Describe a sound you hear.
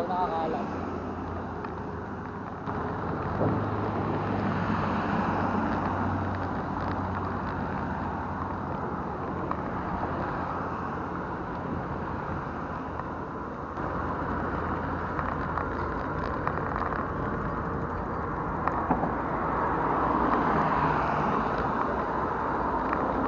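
Bicycle wheels tick as they are pushed along.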